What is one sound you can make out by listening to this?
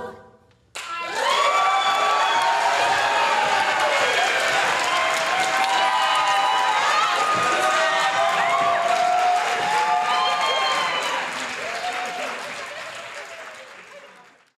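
Young audience members cheer and whoop.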